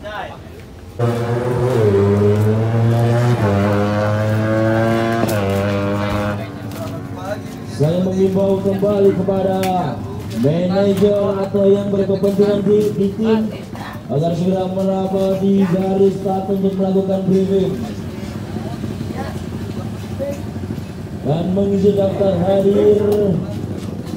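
A motorcycle engine runs and revs up loudly, again and again.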